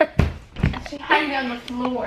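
A young girl laughs loudly close by.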